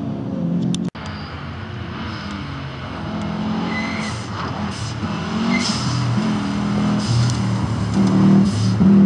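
A rally car's engine roars and revs as it accelerates past.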